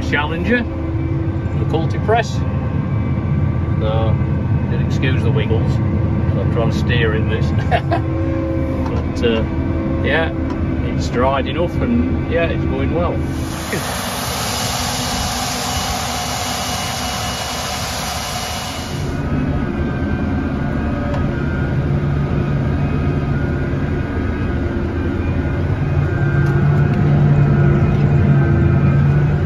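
A tractor engine drones steadily, heard from inside the cab.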